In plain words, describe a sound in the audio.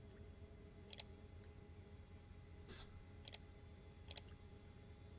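Short electronic clicks sound from a computer interface.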